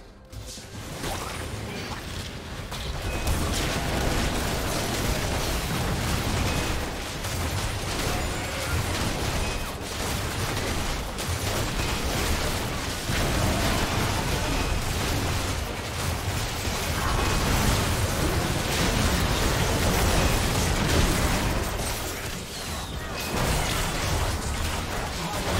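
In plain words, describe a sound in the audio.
Spell blasts, hits and bursts crackle in a busy video game battle.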